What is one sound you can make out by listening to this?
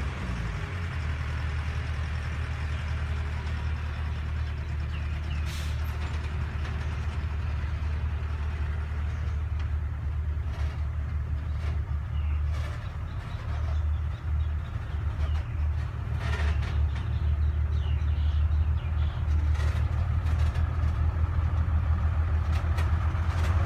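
A diesel truck engine rumbles steadily nearby.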